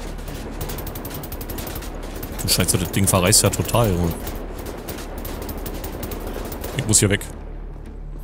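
A heavy gun fires in rapid bursts.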